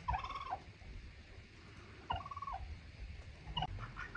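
A turkey gobbles nearby.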